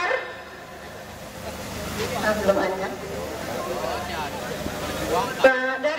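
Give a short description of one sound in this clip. A man speaks loudly through a loudspeaker to a crowd outdoors.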